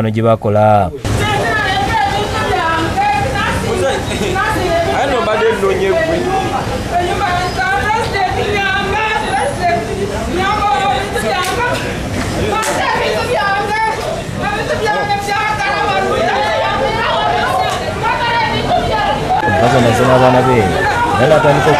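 A middle-aged woman shouts and wails in distress close by.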